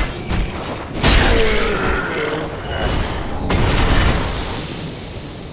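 Heavy weapons clash and strike with loud metallic impacts.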